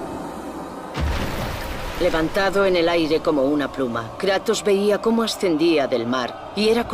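A waterfall roars as water pours down a rock face.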